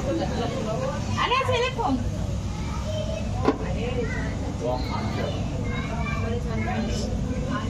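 Several women and men talk and chatter nearby in a lively room.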